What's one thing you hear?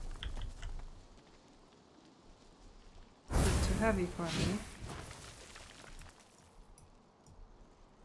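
Flames crackle and flicker.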